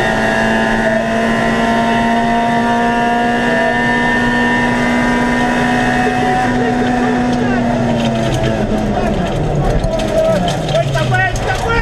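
A rally car engine roars at high revs and then drops in pitch.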